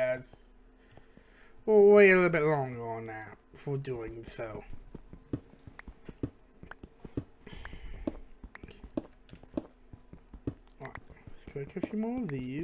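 A man talks animatedly close to a headset microphone.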